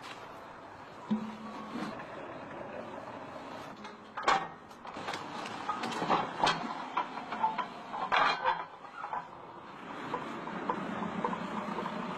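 Metal tools clank and knock against a manhole frame.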